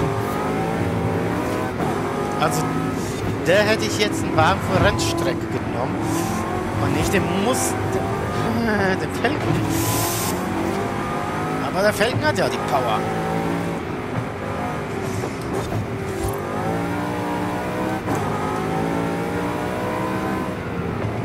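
A car engine roars and revs up and down as it races.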